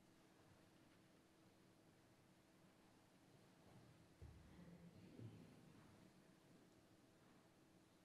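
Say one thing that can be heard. Footsteps shuffle softly in a large echoing church.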